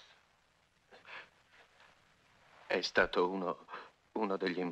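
A middle-aged man speaks.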